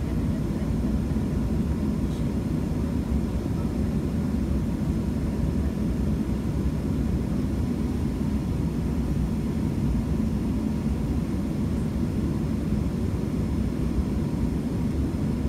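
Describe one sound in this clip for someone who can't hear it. A jet engine hums with a steady low rumble, heard from inside an aircraft cabin.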